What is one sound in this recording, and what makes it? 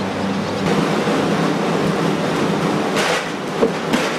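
Trolley wheels roll over a hard floor.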